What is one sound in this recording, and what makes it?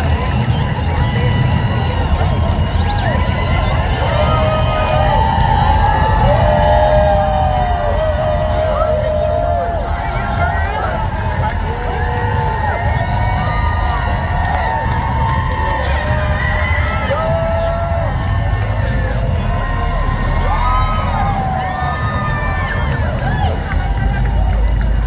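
A large crowd of men and women chatters and cheers outdoors.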